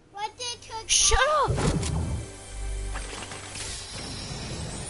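A treasure chest opens with a ringing, chiming burst.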